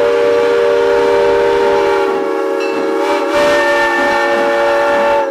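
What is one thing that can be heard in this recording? A steam locomotive rolls slowly along the track.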